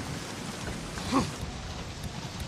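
A heavy thud sounds as someone drops onto the ground.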